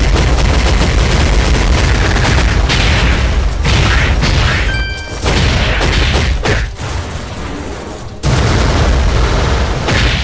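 Game fight effects whoosh and crash with dense, rapid hits.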